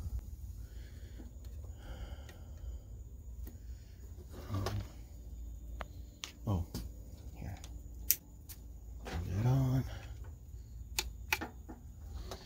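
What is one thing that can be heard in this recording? Plastic buttons click under a finger.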